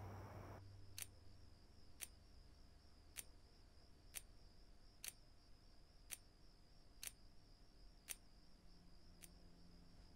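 A wall clock ticks steadily in a quiet room.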